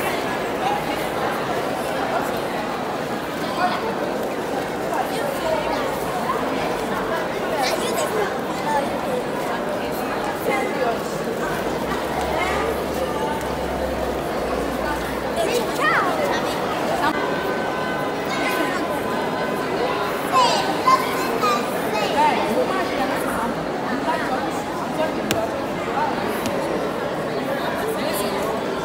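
A crowd of children chatter and call out all around in a large echoing hall.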